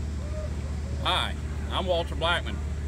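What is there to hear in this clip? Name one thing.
An older man speaks cheerfully, close by.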